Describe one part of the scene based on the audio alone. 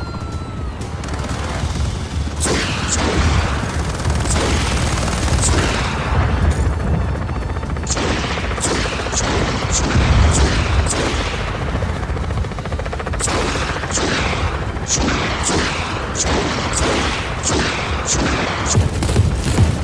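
A helicopter's engine and rotor roar steadily.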